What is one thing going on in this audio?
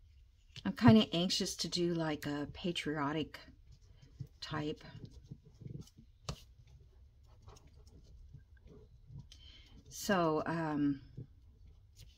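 Paper rustles softly as hands press it down.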